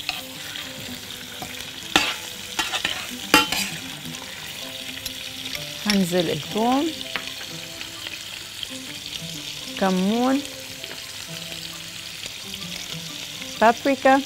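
Shrimp sizzle in hot oil.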